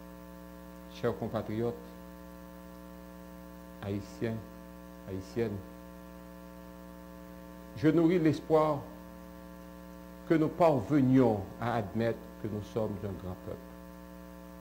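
A man speaks calmly and formally into a microphone, with long pauses.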